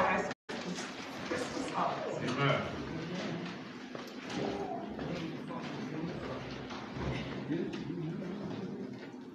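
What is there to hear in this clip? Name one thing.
A man speaks steadily through a microphone in an echoing hall.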